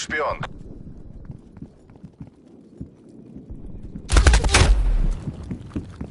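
Gunfire bursts out in rapid, loud shots.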